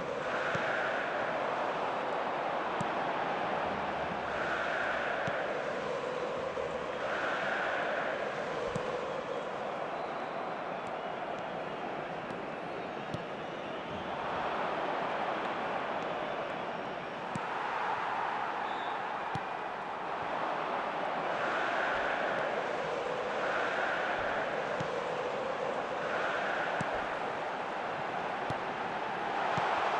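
A large crowd roars and cheers, swelling and fading in waves.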